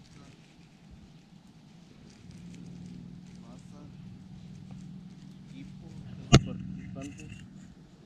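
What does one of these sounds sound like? Plastic bags crinkle and rustle between fingers.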